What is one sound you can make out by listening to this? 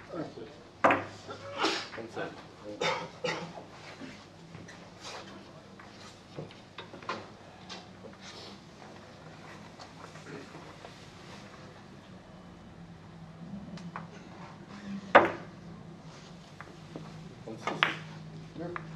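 A cue tip strikes a billiard ball.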